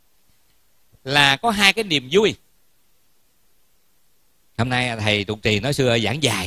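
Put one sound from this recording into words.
A man speaks calmly close by, in two short bursts.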